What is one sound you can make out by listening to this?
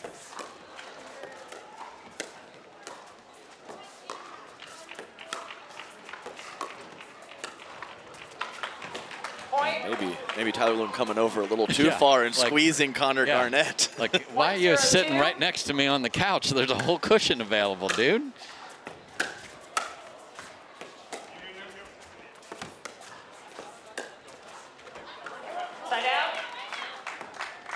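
Paddles strike a plastic ball with sharp pops in an echoing hall.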